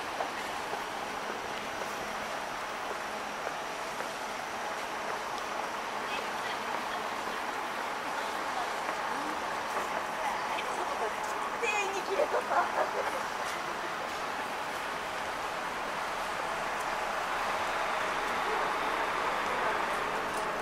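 City traffic hums steadily in the background.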